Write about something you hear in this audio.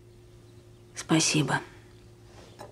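A second young woman answers in a soft voice.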